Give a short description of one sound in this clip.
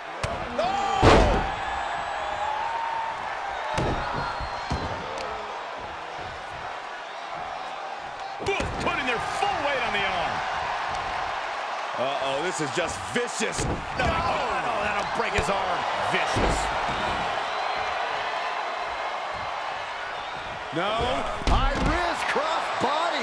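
Bodies slam down hard onto a wrestling ring mat with heavy thuds.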